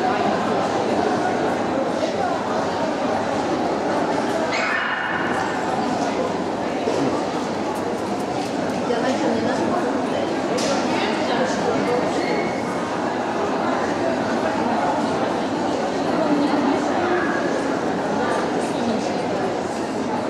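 A crowd murmurs steadily in a large echoing hall.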